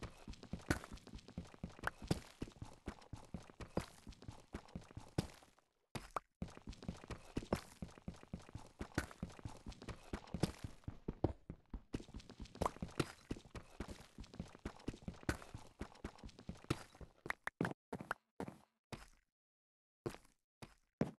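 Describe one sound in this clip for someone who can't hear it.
A pickaxe chips at stone with quick, repeated knocks.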